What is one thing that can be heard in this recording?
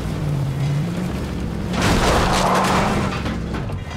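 A crash bangs as the car smashes through something.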